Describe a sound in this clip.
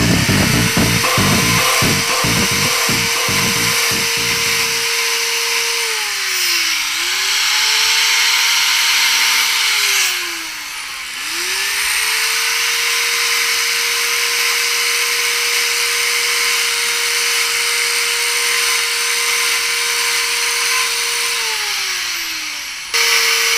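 A chainsaw chain cuts into wood with a rough rasping noise.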